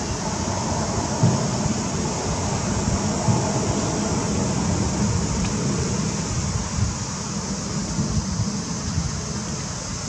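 A young monkey rustles and crinkles corn husks up close.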